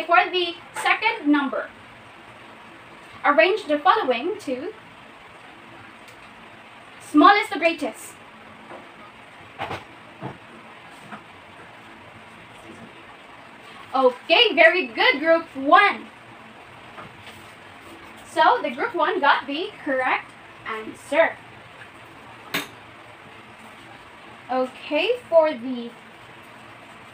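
A young woman speaks clearly and calmly close by, in bursts with pauses.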